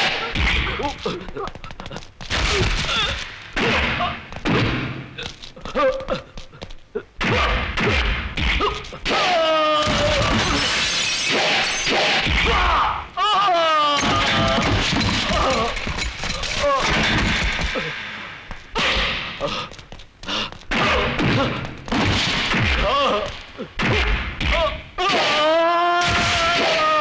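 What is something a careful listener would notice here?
A man grunts and cries out while fighting.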